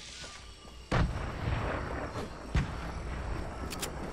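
A grenade explodes with a deep boom.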